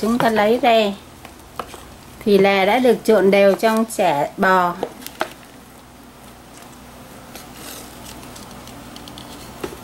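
A wooden spoon scrapes food out of a plastic bowl.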